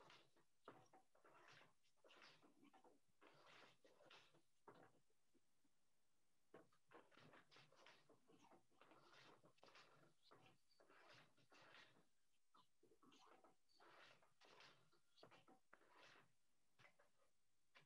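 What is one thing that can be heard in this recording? A wooden loom clacks and thumps softly.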